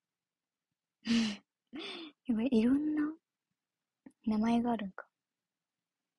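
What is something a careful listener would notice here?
A young woman speaks softly in short bursts, close to the microphone.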